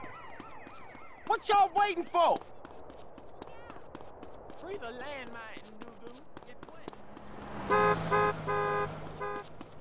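Footsteps slap quickly on pavement as a man runs.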